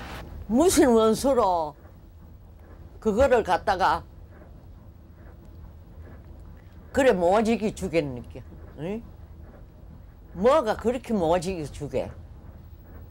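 An elderly woman speaks close by in short, emotional bursts with pauses between.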